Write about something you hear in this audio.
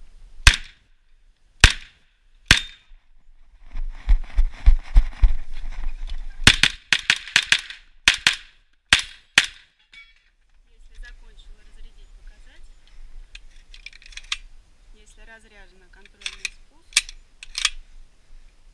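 A paintball marker fires sharp pops in quick bursts, close by.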